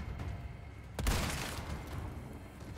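A rifle shot cracks loudly and echoes.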